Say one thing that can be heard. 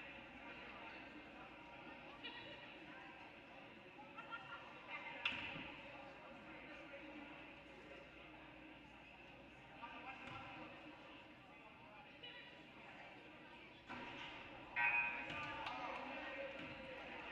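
A crowd murmurs and calls out in a large echoing gym.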